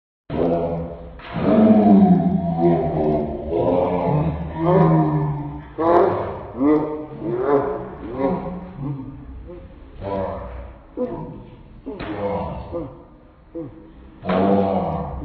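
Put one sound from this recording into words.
A man sings loudly and with feeling, close by.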